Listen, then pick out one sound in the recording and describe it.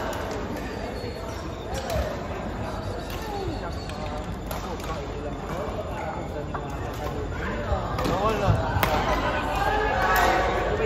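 Badminton rackets smack a shuttlecock in quick rallies.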